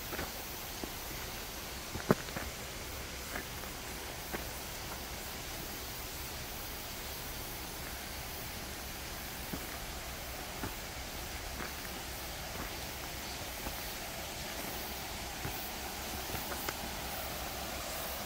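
Footsteps crunch on a leafy forest path.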